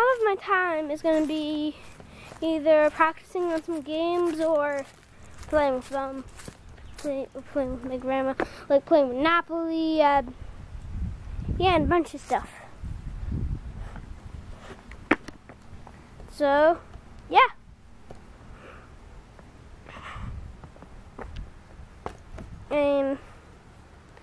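A boy talks close to the microphone with animation.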